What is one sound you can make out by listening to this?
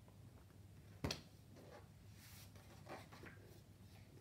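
A book's pages rustle as they turn.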